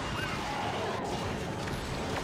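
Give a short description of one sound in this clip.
A gun fires a shot.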